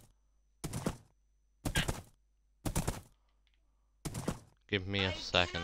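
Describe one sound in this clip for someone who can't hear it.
A horse's hooves thud on grass in a steady rhythm.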